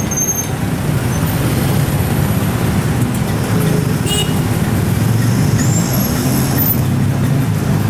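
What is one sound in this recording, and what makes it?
Car engines idle and creep past close by.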